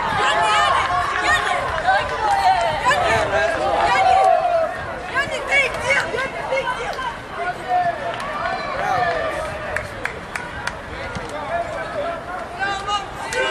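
Young male players shout and cheer excitedly outdoors.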